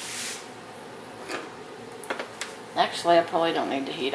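A knife scrapes food off a cutting board into a pan.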